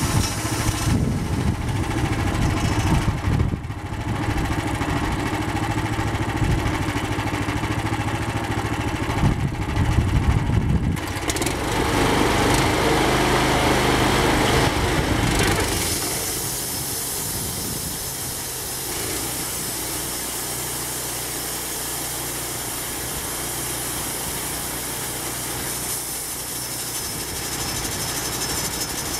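A sawmill engine runs with a steady roar.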